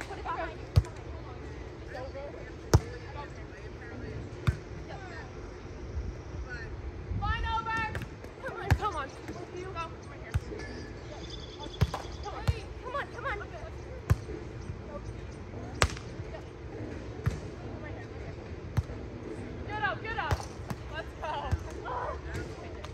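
A volleyball is struck with sharp thumps again and again.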